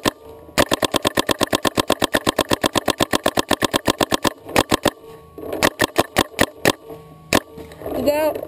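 A paintball marker fires rapid bursts of sharp pops close by.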